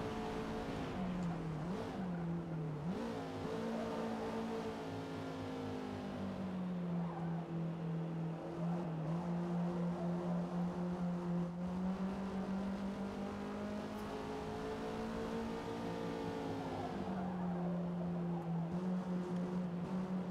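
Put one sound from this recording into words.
A racing car engine roars steadily, dropping in pitch with gear changes and climbing again as it speeds up.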